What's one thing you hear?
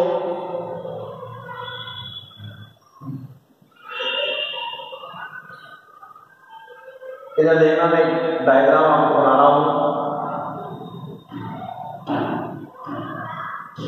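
A young man speaks calmly and explains, close by in a room with some echo.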